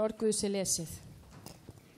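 A woman sings through a microphone, echoing in a large hall.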